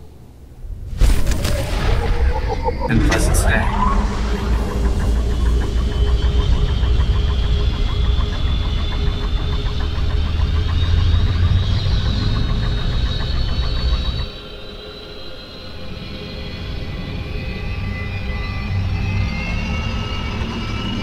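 A shuttle hums and rushes steadily as it speeds along a track.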